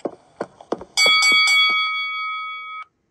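A bright game chime rings out and slowly fades.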